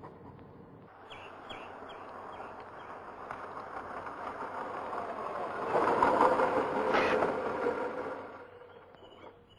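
A car engine rumbles as the car drives up on a road.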